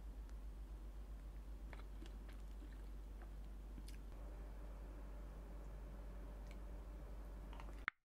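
Chopsticks clatter and tap against a pan full of sticky sauce.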